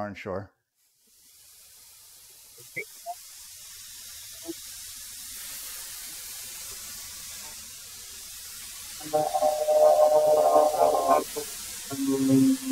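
A thickness planer whirs steadily.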